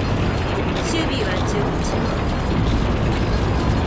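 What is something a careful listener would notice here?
Tank tracks clatter and grind on pavement while turning.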